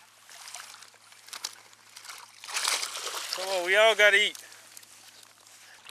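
Water splashes and drips as a wire trap is pulled from the water.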